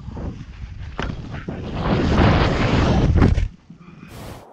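Skis rush and hiss through deep powder snow.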